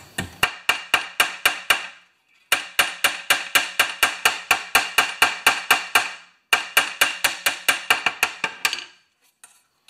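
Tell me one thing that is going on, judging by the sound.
A hammer taps rapidly on metal, ringing sharply.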